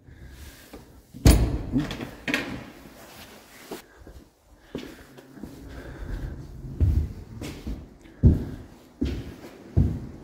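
Footsteps thud on a hard floor in an echoing empty building.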